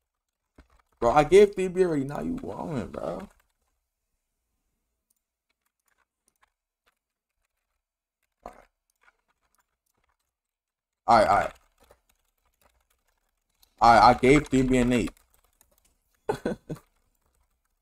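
A young man speaks with animation into a close microphone, in short bursts.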